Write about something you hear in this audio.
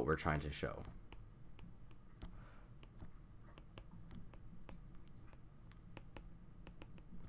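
A pen scratches and taps while writing.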